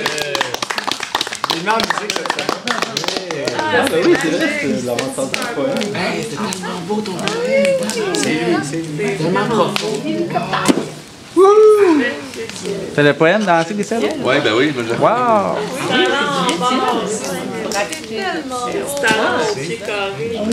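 A campfire crackles and pops.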